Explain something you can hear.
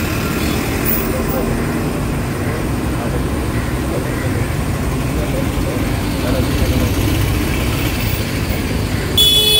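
Motor scooters ride past on a street.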